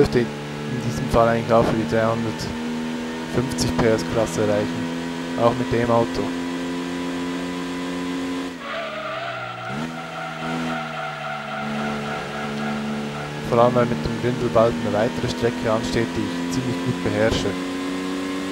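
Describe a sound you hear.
Tyres screech through the bends.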